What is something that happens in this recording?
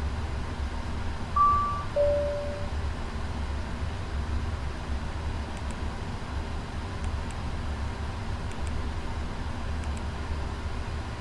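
A low, steady aircraft engine hum fills a cockpit.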